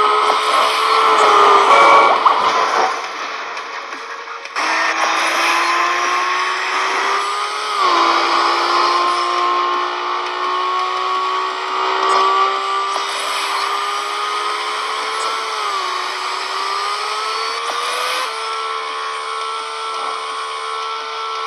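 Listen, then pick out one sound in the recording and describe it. A car engine accelerates at high speed, its pitch climbing and dropping with each gear shift.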